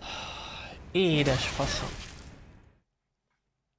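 A young man cries out loudly in dismay through a close microphone.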